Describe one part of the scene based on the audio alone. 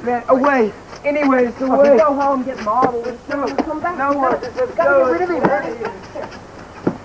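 A young man talks loudly and with animation close by.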